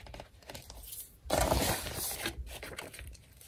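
Paper rustles and slides as hands shift sheets of paper.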